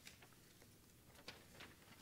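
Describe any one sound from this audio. Paper rustles near a microphone.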